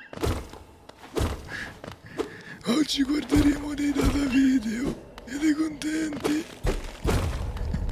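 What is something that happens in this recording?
Quick sword slashes swish and clang.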